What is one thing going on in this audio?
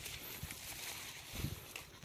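A tool digs into soil with dull thuds.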